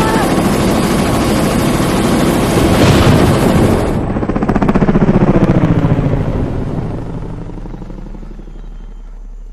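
A helicopter engine roars loudly, then fades away.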